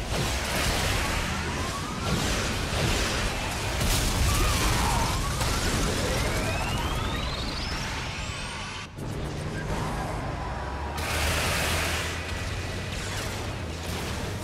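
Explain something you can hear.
Missiles whoosh and explode with loud bangs.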